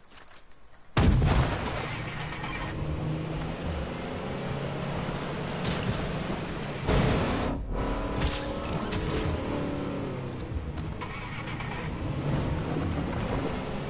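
A motorboat engine hums as the boat moves across water.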